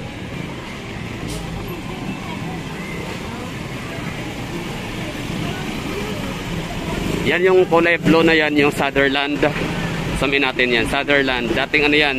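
Traffic idles and rumbles along a busy street.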